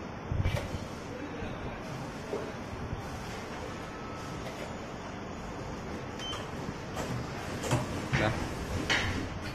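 A printing machine hums and clatters steadily.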